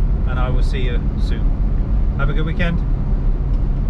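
A man speaks briefly and casually, close by.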